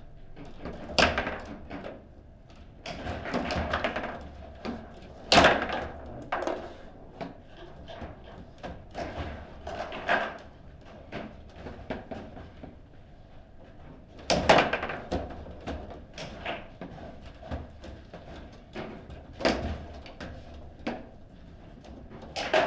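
A foosball ball knocks sharply against the table's players and walls.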